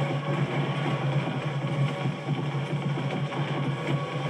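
Gunfire from a video game plays through a television speaker.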